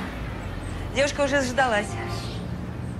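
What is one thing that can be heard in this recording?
A young woman sobs and speaks in a shaky voice close by.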